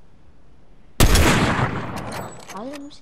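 A sniper rifle fires a single loud shot that booms and fades.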